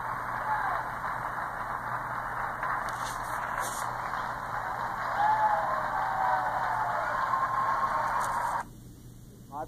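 An audience cheers and applauds, heard through a television loudspeaker.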